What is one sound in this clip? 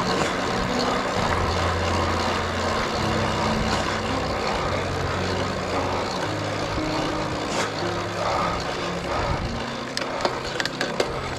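A road bike's tyres hum on asphalt.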